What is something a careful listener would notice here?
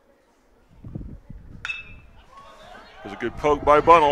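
A bat cracks against a baseball.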